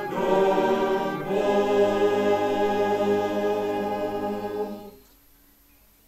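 A choir of elderly men sings together outdoors, then stops.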